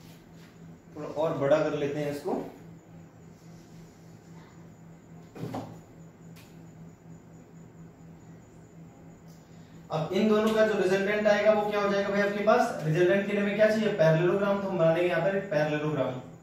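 A young man explains calmly, close by.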